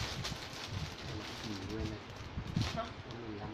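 Fabric rustles as clothes are handled.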